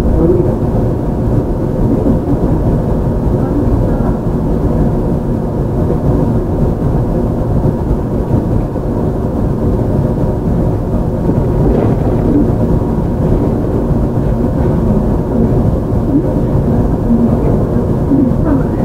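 An electric train rumbles along the tracks with a low, steady drone.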